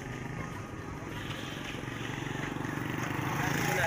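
A motorcycle engine runs close by.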